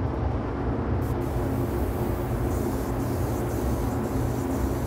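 A spray gun hisses as it sprays paint.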